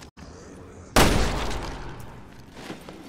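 A gunshot bangs loudly and echoes.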